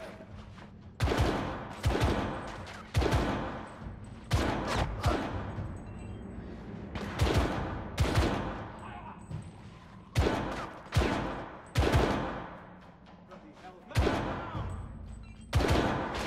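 A rifle fires again and again, each shot ringing out with a loud echo.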